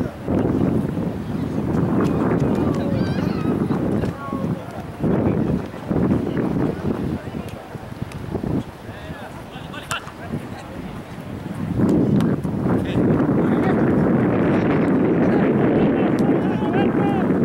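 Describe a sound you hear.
Young men shout to each other in the distance across a field.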